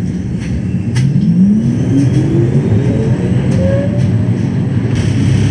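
A tram's electric motor whines, rising in pitch as it speeds up.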